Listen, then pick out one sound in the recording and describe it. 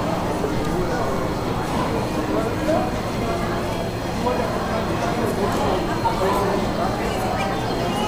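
Many people chatter in the background of a large echoing hall.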